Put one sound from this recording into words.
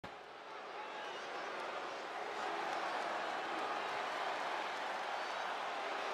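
A large crowd cheers and roars in a huge echoing arena.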